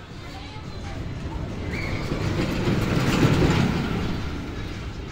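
A roller coaster rumbles past, growing louder then fading.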